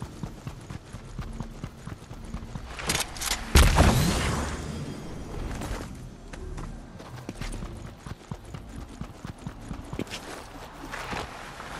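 Quick footsteps patter on grass and pavement.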